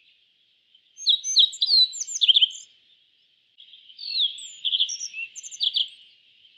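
A small songbird sings bright, quick chirps and trills.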